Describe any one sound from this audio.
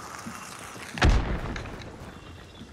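A gunshot booms and echoes.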